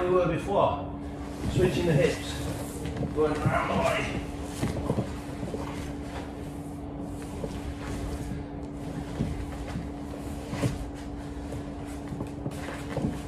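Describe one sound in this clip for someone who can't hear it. A man's body thumps and shuffles against a padded mat.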